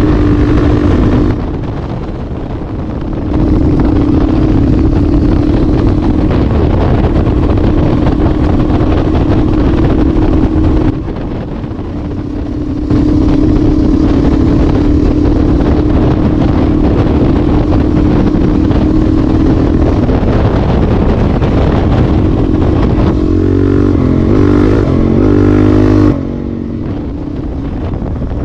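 A motorcycle engine drones steadily as the bike rides along.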